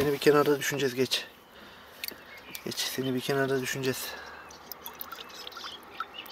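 Water sloshes as a hand stirs mud in a bucket.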